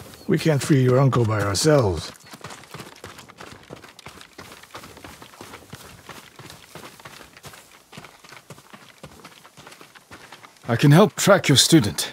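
Footsteps crunch softly on a dirt path.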